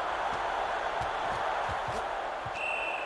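Football players' pads thud together in a tackle.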